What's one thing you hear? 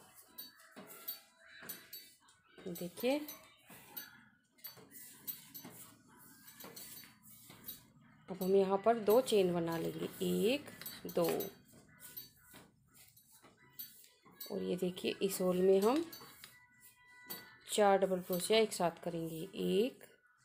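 A crochet hook softly scrapes and taps through yarn.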